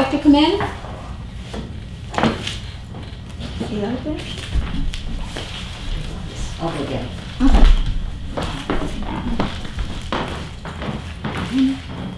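Paper rustles as pages are leafed through.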